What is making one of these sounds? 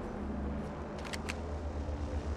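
A gun clicks and rattles as it is raised.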